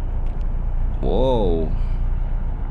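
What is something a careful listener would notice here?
A young man makes a short vocal sound close to a microphone.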